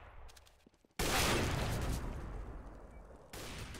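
A sniper rifle fires a single loud shot that echoes away.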